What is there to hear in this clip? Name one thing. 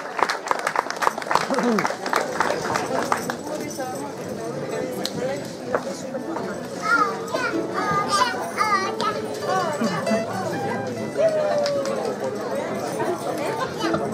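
Mandolins and guitars are strummed together outdoors.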